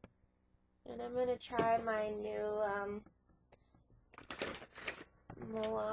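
A young woman speaks close to a webcam microphone.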